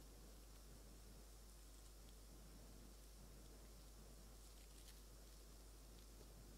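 Paper rustles softly close by.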